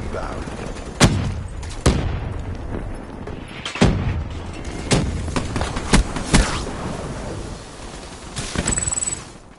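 Gunshots ring out in sharp, loud cracks, ending in a short rapid burst.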